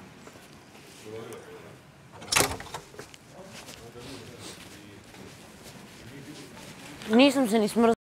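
A man talks nearby in a room.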